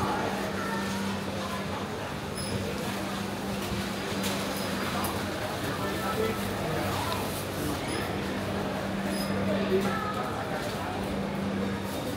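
A murmur of many voices echoes through a large indoor hall.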